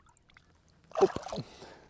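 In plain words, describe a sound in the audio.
Water splashes softly as a fish is let go.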